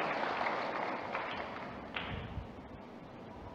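An audience applauds in a large echoing hall, and the applause fades.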